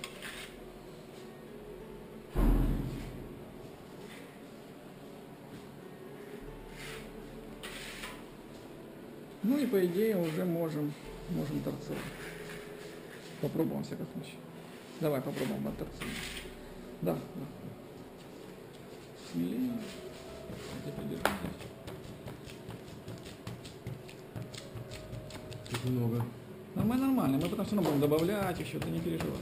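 A trowel scrapes plaster on a board.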